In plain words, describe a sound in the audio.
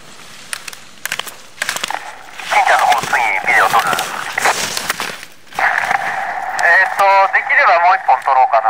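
Skis scrape and hiss across hard snow.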